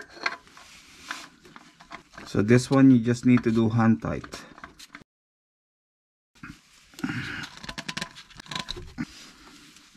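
A socket wrench clicks as it turns a bolt under a car.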